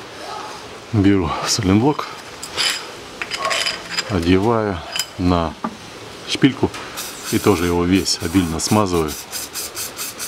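A ratchet wrench clicks rapidly in short bursts.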